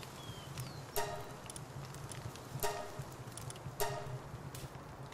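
Short menu chimes ring out a few times.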